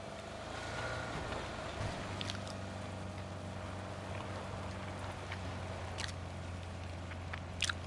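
A car engine idles with a steady low hum.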